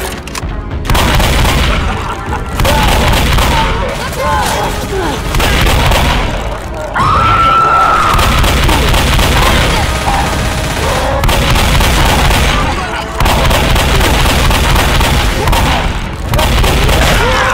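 A large monster roars and growls.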